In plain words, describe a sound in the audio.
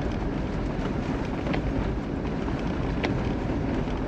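A windscreen wiper sweeps across the glass.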